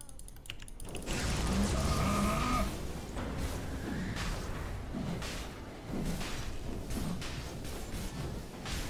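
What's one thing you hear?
Video game spell effects whoosh and crackle during a fight.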